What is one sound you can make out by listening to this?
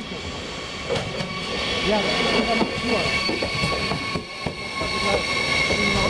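Train brakes squeal in high, steady tones as the train slows.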